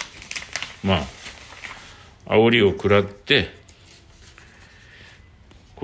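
Sheets of paper rustle as pages are turned.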